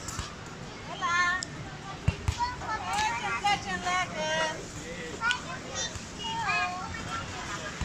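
A young girl talks and squeals excitedly nearby.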